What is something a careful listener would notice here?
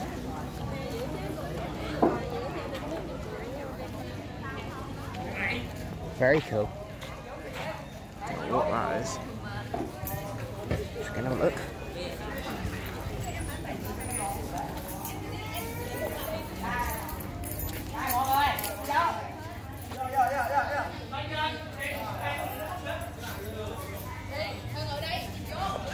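Men and women chat in a crowd nearby outdoors.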